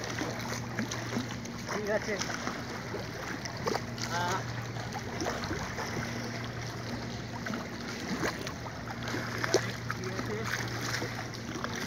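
Water splashes as a man swims and wades close by.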